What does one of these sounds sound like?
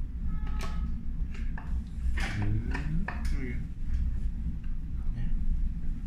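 A metal door handle clicks as it turns.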